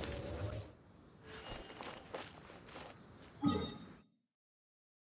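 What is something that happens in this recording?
Footsteps run over grass.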